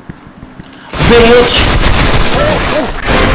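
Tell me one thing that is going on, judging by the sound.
A rifle fires in rapid loud bursts.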